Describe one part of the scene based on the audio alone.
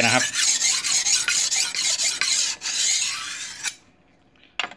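A steel blade scrapes rhythmically back and forth across a whetstone.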